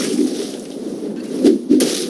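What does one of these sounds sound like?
Magic spells and blows burst and clash in a game fight.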